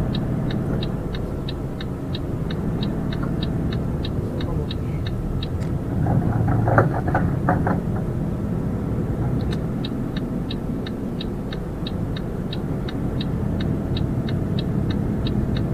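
A truck engine hums steadily.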